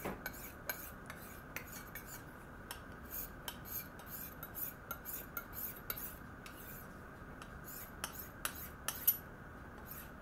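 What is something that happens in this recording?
A knife blade scrapes rapidly against a sharpening file.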